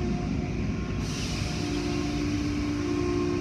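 Water sprays and hisses against a car window.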